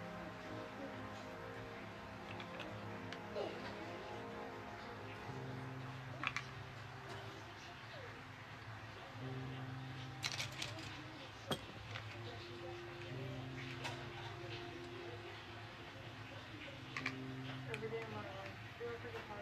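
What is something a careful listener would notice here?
Plastic toy bricks click and rattle as hands sort and snap them together.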